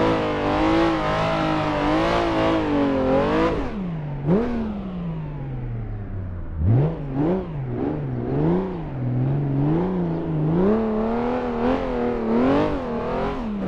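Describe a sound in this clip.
A car engine revs hard, rising and falling in pitch as gears shift.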